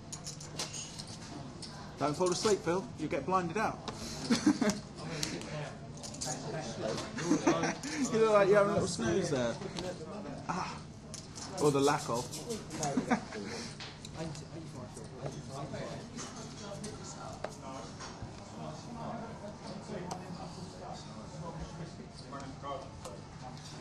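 Poker chips clack together.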